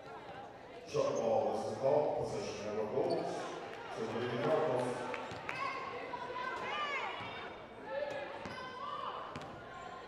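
Spectators cheer and shout in a large echoing gym.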